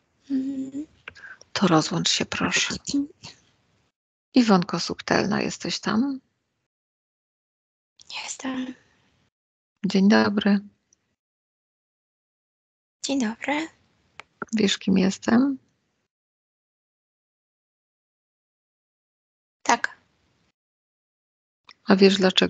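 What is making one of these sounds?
A middle-aged woman speaks calmly into a headset microphone, heard over an online call, with pauses.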